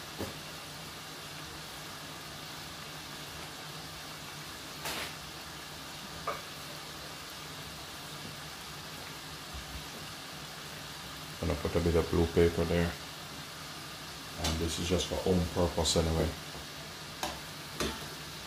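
Oil sizzles and bubbles softly in a pot.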